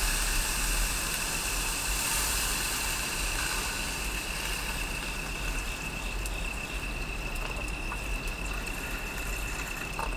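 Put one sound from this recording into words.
Milk pours into a metal mess tin.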